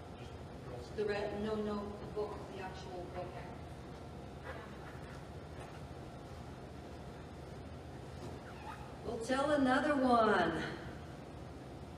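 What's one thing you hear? A woman speaks through a microphone in a large echoing hall.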